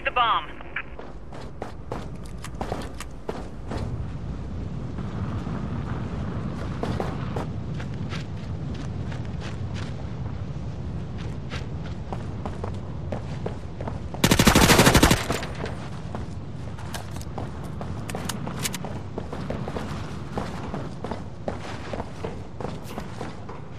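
Footsteps run quickly.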